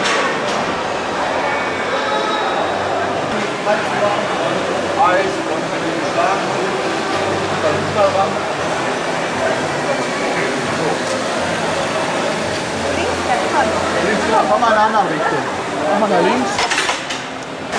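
A crowd of people chatters in a busy, echoing hall.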